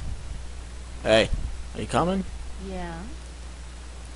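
A young woman speaks briefly and casually.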